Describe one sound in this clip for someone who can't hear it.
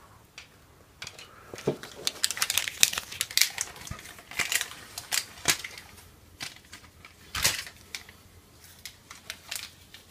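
Fabric rustles and scrapes close by.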